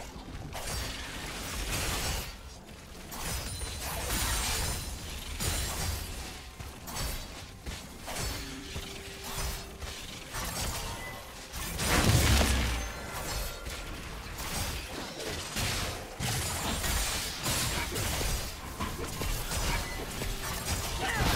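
Game hits and blasts thud repeatedly.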